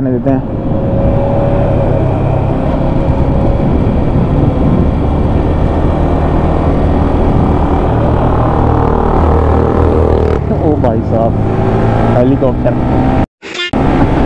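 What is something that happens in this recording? A single-cylinder sport bike engine hums while cruising.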